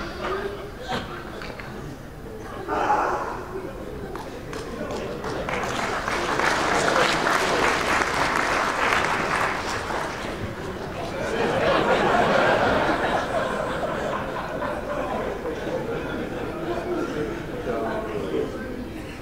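A man speaks with animation through a microphone in a large echoing hall.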